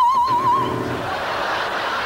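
A piano plays a final chord.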